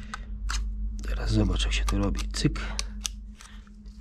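Plastic wrapping crinkles as it is peeled open.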